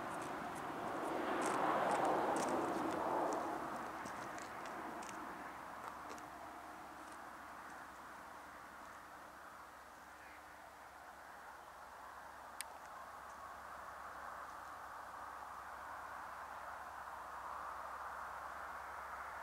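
A diesel locomotive rumbles far off as it approaches.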